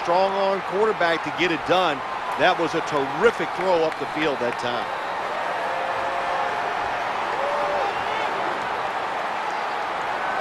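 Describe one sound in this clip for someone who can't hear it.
A large stadium crowd murmurs steadily.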